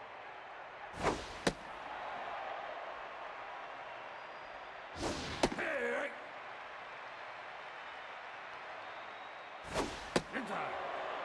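A baseball smacks into a catcher's mitt several times.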